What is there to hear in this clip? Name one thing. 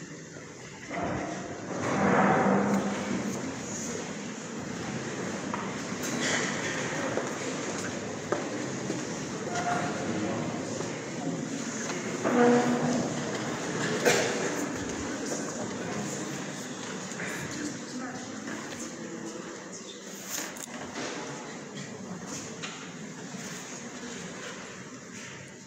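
A man sings a chant through a microphone in a large echoing hall.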